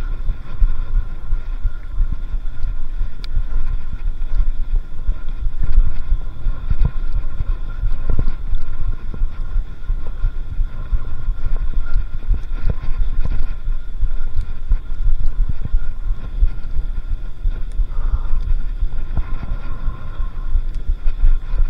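Wind buffets loudly outdoors.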